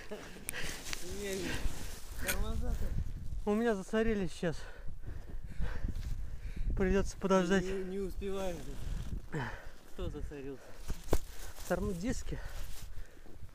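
A man talks close to the microphone.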